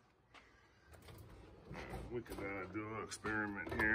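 A tool drawer slides open.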